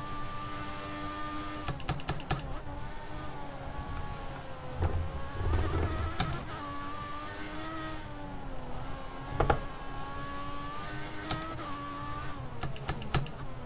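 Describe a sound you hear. A racing car engine whines loudly, climbing in pitch and dropping back at each gear change.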